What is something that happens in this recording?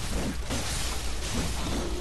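A blade slashes and strikes flesh with a wet thud.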